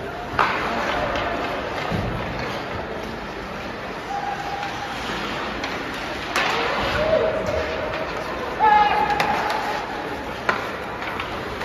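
Skates scrape and swish across the ice in a large echoing rink.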